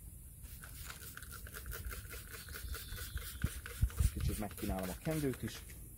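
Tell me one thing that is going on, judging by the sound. A cloth wipes across a smooth panel.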